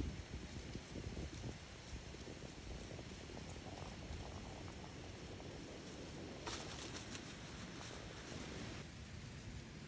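Dry leaves rustle and crunch as something heavy is dragged over them.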